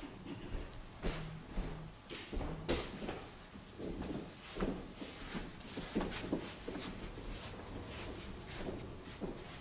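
Footsteps shuffle across the floor.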